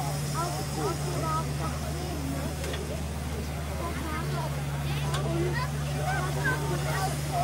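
A crane's engine hums steadily.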